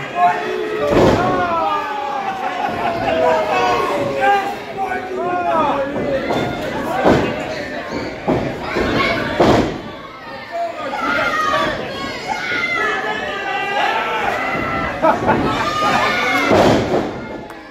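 Wrestlers slam heavily onto a ring mat with loud thuds.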